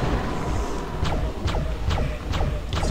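A magical weapon fires with sharp zapping blasts.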